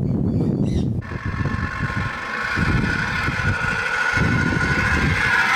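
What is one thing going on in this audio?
An electric ride-on car's motor whines steadily.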